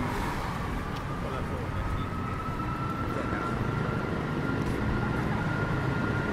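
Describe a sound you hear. A truck engine hums as the truck drives slowly closer.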